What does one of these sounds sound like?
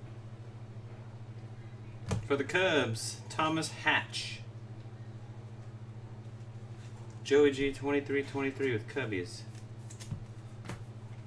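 Trading cards rustle and flick in a man's hands.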